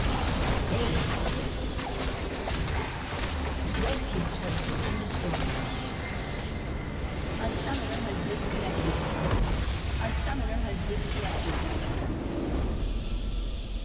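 Game combat effects clash and explode.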